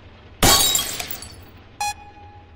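A magical spell bursts with a loud whoosh and fizzles away.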